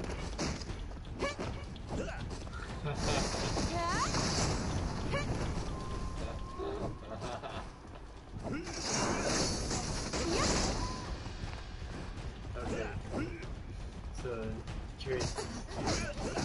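Swords clash and swoosh in a game fight.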